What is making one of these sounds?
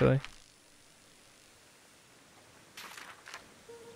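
A paper page flips over.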